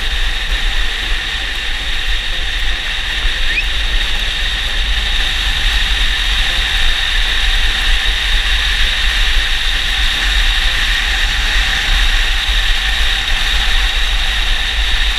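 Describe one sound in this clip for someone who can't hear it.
Wind roars loudly past a fast-moving rider.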